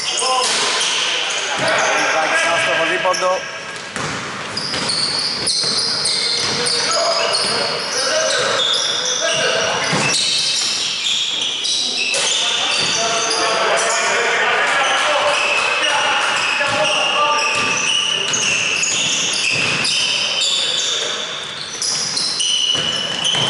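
A basketball bounces on a hardwood floor in a large echoing hall.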